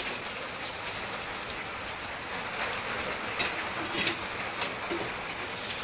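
Vegetable stew pours from a metal pan into a metal pot.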